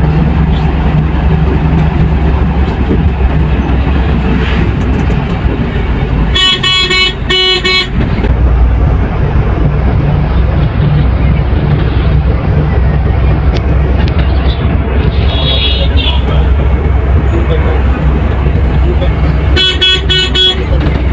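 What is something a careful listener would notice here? A bus engine rumbles steadily as the bus drives along a road.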